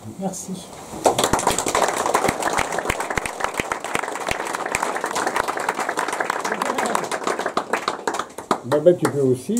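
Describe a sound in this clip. A crowd applauds in a room.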